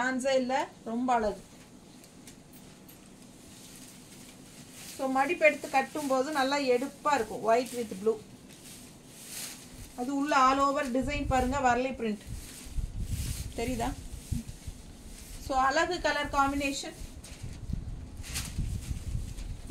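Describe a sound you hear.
Cloth rustles as a woman handles fabric.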